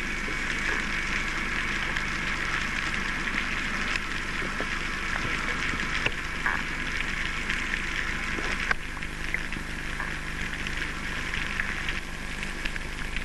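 Steady underwater hiss and crackling clicks fill the water.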